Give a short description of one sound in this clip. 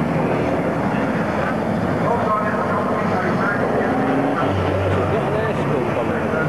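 Diesel racing truck engines roar along a circuit.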